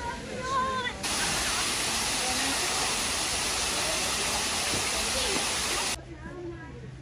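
A waterfall splashes and rushes steadily.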